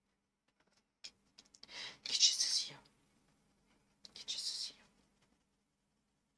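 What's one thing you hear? A young woman speaks briefly into a headset microphone.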